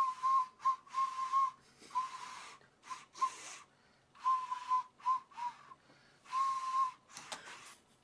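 A man blows short, buzzing toots on a toy whistle.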